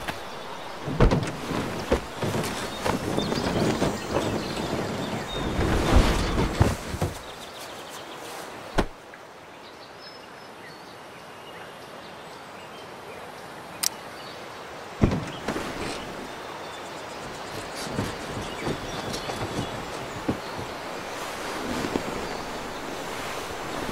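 Someone rummages through an old truck cab, knocking and rustling.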